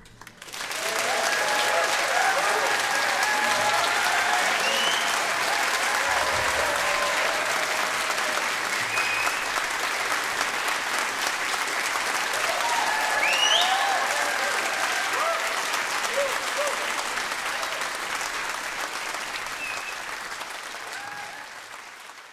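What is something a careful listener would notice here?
Members of an audience cheer and whistle.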